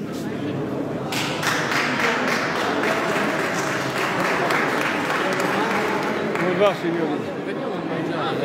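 A crowd of adults murmurs and chatters close by in a large echoing hall.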